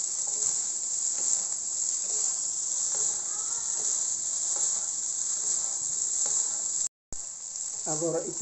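Spatulas scrape and clatter against a wok as the rice is tossed.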